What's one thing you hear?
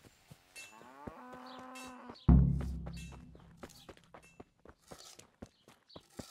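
Footsteps crunch steadily on a dirt road.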